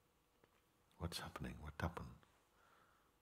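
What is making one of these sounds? An elderly man speaks calmly and briefly.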